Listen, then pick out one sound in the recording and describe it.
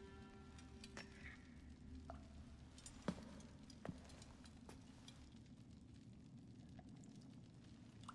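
A fire crackles and pops nearby.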